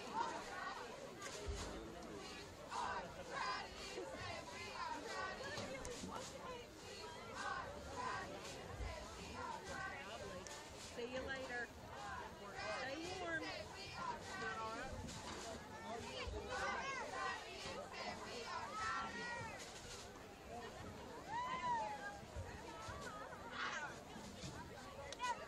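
A crowd chatters and cheers throughout.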